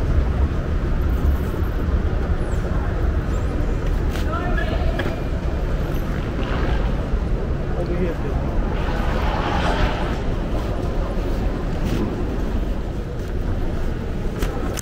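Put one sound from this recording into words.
Voices murmur and echo in a large hall.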